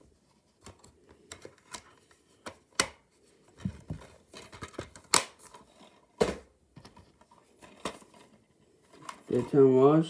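Plastic cases click and rattle as they are handled close by.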